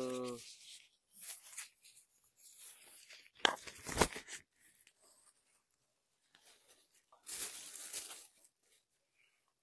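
Leaves and a plastic bag rustle.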